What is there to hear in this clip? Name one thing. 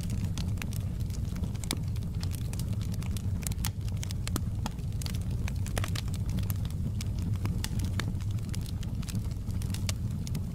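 A wood fire crackles and pops with frequent sharp snaps.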